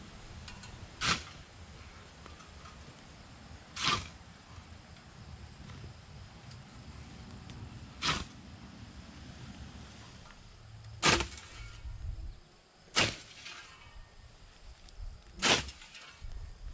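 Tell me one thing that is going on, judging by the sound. A scythe swishes through tall grass in sweeping strokes.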